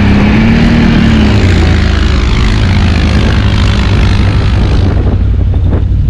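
A quad bike engine revs hard as it climbs a dirt slope.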